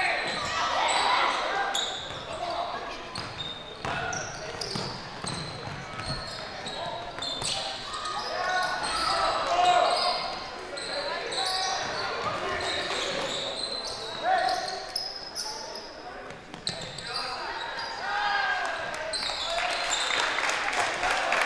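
Spectators and players shout and call out.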